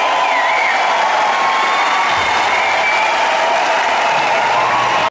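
Loud live music plays through large loudspeakers in a big echoing arena.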